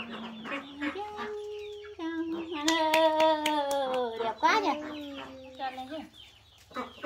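A young woman talks and sings playfully to a small child close by.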